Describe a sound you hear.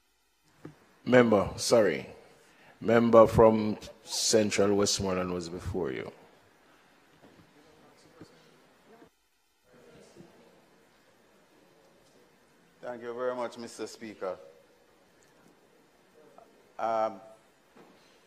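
A man speaks formally through a microphone, in short bursts with pauses.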